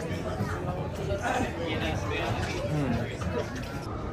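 A crowd of people murmurs.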